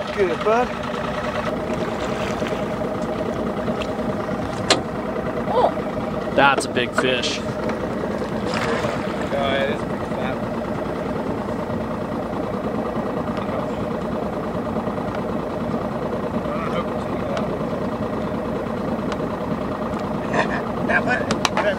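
Water laps and sloshes against a boat hull.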